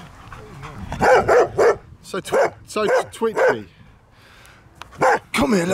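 A dog barks loudly and repeatedly close by.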